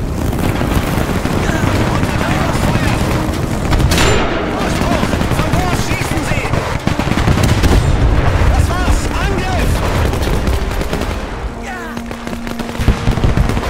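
Battle noise rumbles steadily in the background.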